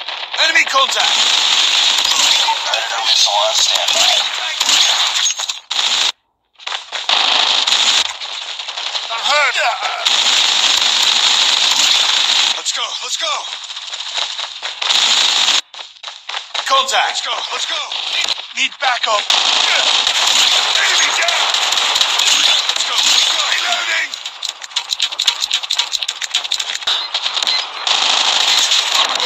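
Rapid machine gun fire rattles in bursts.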